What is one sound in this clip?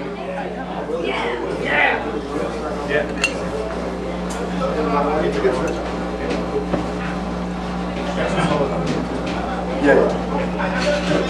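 Electric guitars play.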